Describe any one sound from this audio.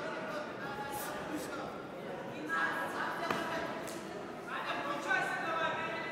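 Gloved punches thud against padded headgear and jackets.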